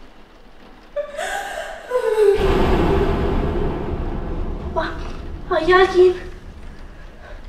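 A young woman speaks urgently up close.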